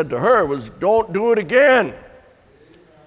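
An elderly man speaks with animation, close to a microphone.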